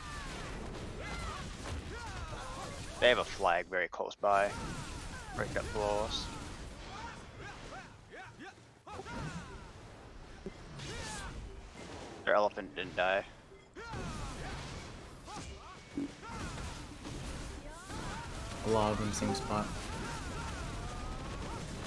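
Magic blasts whoosh and crackle during a fight.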